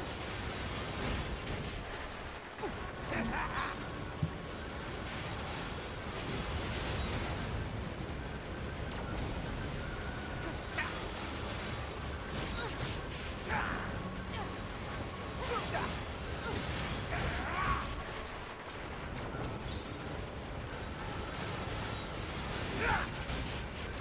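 Heavy blows thud and crash against a large machine.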